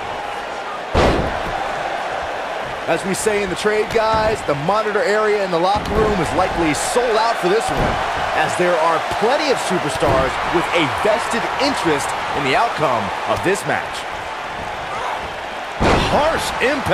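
A body slams heavily onto a wrestling ring mat with a loud thud.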